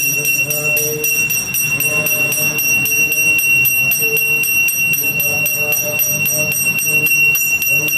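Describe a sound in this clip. A small hand bell rings steadily.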